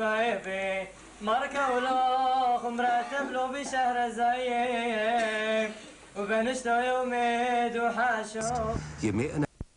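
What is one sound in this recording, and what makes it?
Children and adults sing together in an echoing hall.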